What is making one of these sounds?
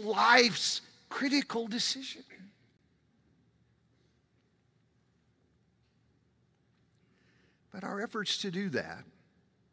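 A middle-aged man lectures with animation through a microphone, pausing between phrases.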